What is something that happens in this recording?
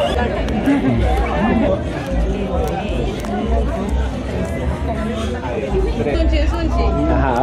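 Several adults chatter and laugh loudly close by.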